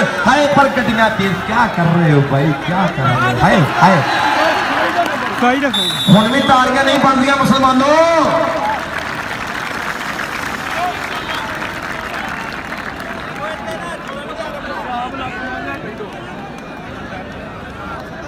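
A large crowd murmurs and cheers outdoors.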